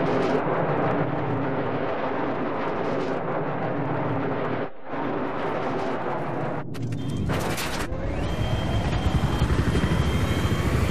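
An attack helicopter's rotor beats.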